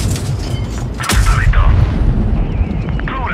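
A shell explodes against a tank with a heavy blast.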